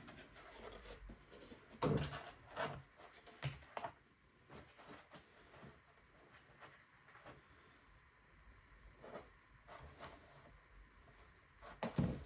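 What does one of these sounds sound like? Thin boards knock and scrape on a table.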